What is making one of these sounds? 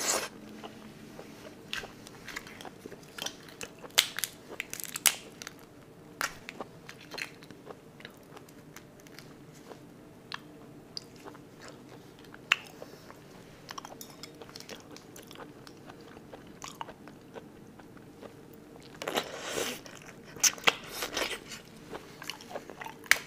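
Shrimp shells crack and crunch as they are peeled by hand, close up.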